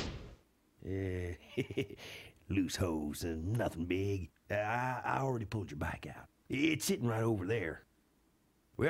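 A man chuckles and speaks in a gruff, drawling voice.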